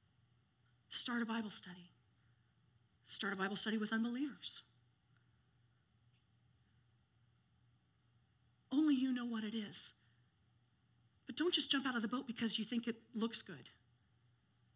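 A middle-aged woman speaks slowly through a microphone, with long pauses.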